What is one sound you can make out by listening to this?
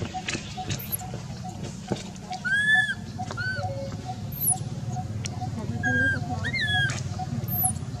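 A baby macaque cries with shrill squeals.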